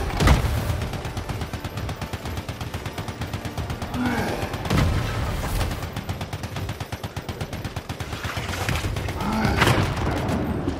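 Heavy explosions boom.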